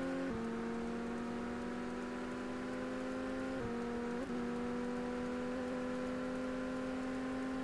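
A racing car engine roars steadily, dropping in pitch with each gear change.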